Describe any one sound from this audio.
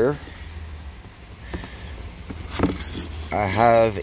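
A cardboard lid slides open.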